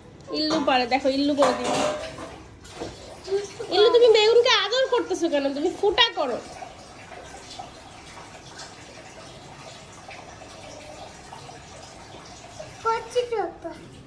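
A second young child talks close by.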